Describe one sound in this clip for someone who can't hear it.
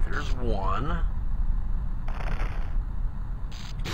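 A bow twangs as an arrow is shot.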